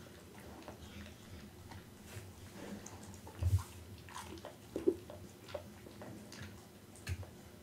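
A dog chews and crunches wetly on raw meat close to a microphone.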